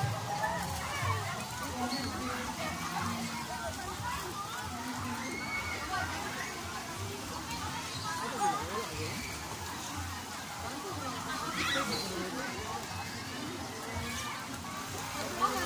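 Water splashes in a pool.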